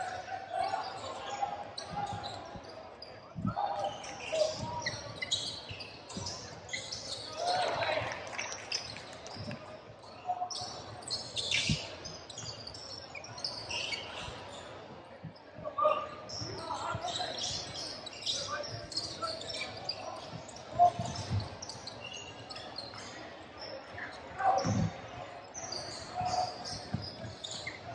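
A basketball bounces on the court with hollow thuds.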